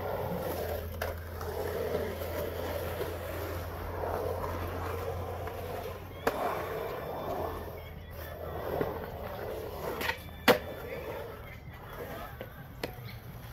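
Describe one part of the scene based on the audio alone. A skateboard clacks sharply on concrete.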